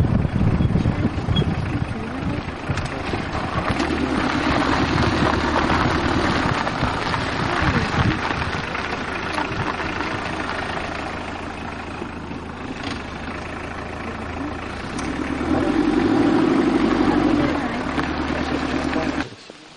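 A car engine hums steadily while the car rolls slowly.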